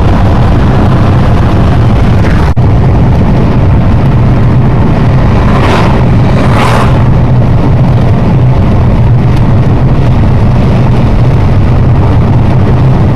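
A car's engine and tyres rumble steadily on a road from inside the car.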